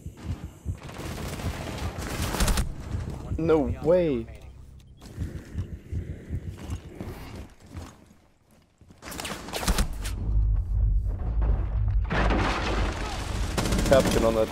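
Gunshots ring out in short bursts.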